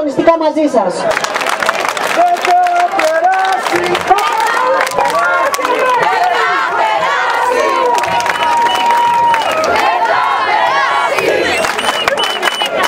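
A large crowd chants and shouts slogans in unison.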